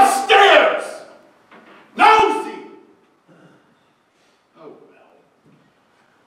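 A man speaks loudly on a stage, his voice echoing in a large hall.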